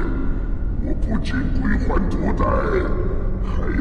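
A woman speaks softly and gravely.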